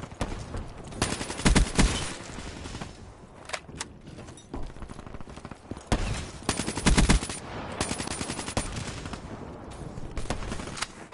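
Automatic gunfire rattles in rapid bursts.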